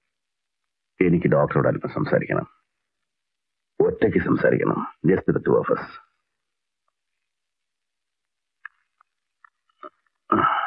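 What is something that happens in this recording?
A man speaks firmly and clearly, close by.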